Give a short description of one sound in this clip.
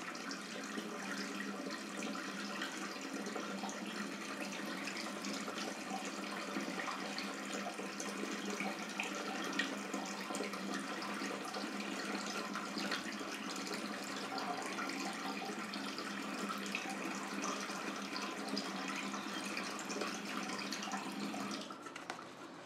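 A shaving brush swishes and scrubs lather against a beard close up.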